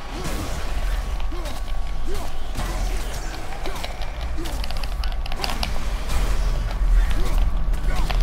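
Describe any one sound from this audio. Fiery explosions burst and crackle.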